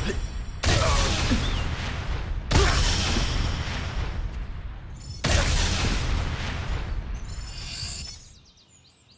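Flames roar and crackle in loud bursts.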